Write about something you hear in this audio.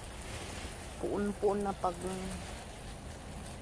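Water sprays from a hose and patters onto soft soil.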